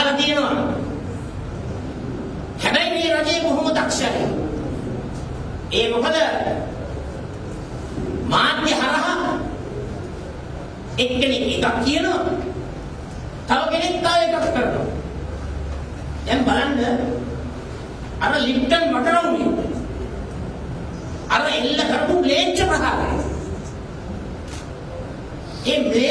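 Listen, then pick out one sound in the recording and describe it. A middle-aged man speaks forcefully into microphones in a reverberant room, in bursts with pauses.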